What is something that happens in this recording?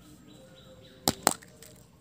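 A hollow plastic ball clicks and crackles as hands squeeze it apart.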